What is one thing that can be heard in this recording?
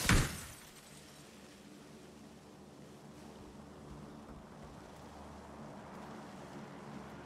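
Footsteps thud on a wooden floor indoors.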